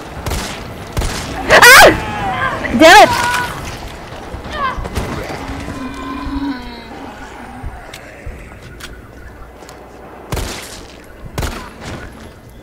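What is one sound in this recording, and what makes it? Gunshots bang sharply a few times.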